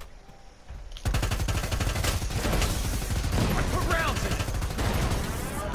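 An automatic rifle fires rapid shots.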